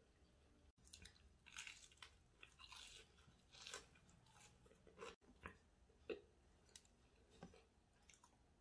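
A woman chews wetly with her mouth close to a microphone.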